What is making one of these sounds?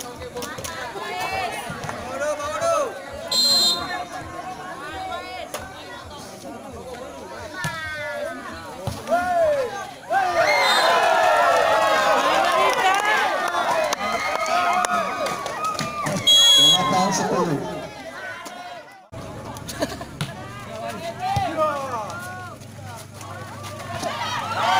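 A crowd of young men and women shouts and cheers outdoors.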